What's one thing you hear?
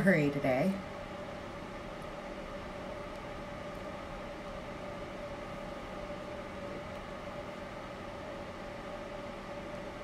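A small motor hums steadily.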